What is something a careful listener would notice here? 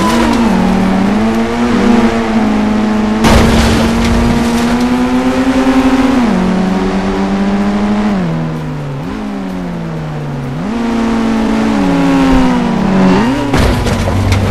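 A monster truck engine revs and roars, rising and falling in pitch.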